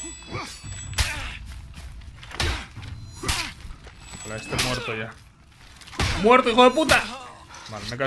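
Swords clash in sharp metallic hits.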